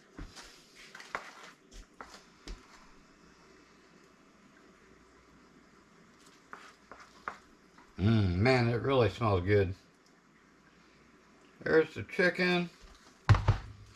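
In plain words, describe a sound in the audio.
A wooden spoon scrapes food out of a plastic bowl.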